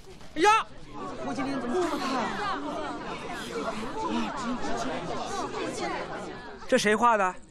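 A crowd murmurs and chatters excitedly.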